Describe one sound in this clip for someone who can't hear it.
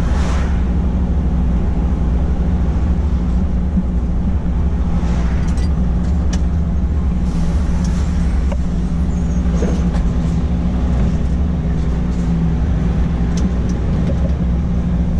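Tyres roll on the road beneath a truck.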